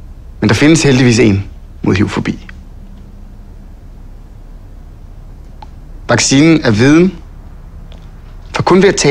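A young man speaks calmly and closely, in short phrases with pauses.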